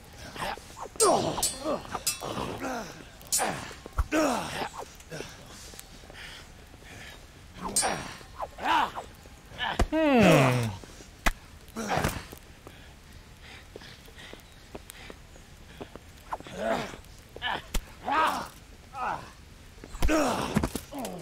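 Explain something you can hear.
Swords clash and clang with sharp metallic rings.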